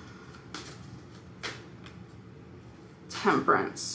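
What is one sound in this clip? Cards shuffle softly in hands.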